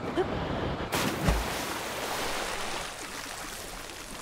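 Water splashes loudly as a body plunges in.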